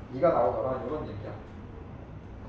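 A young man speaks up close, then goes quiet.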